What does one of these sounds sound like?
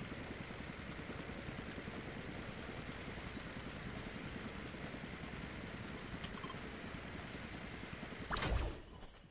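Wind rushes loudly and steadily during a glide, then cuts off.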